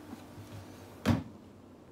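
A thump knocks against a guitar body.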